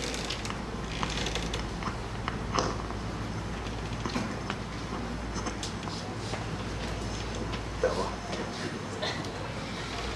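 A microphone rustles and knocks as a man handles it.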